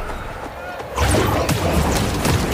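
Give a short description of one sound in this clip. Heavy blows and blasts rumble in a close fight.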